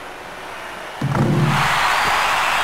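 A crowd in an arena cheers loudly.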